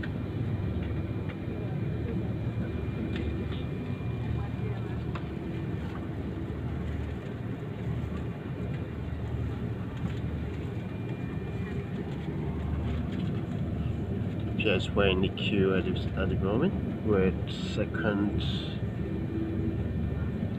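A jet engine's low, steady roar fills an aircraft cabin.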